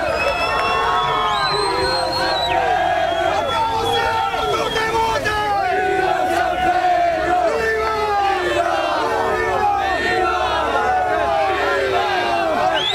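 A large crowd of young men sings and chants loudly outdoors.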